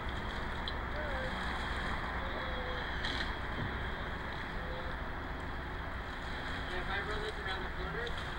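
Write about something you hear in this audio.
Water birds call now and then from a distance.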